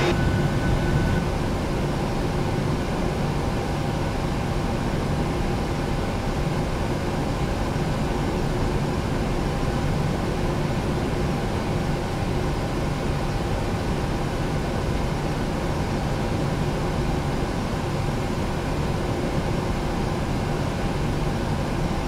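Jet engines hum and whine steadily at idle.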